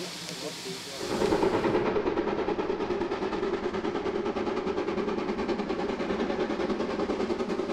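A steam locomotive chuffs with a steady beat.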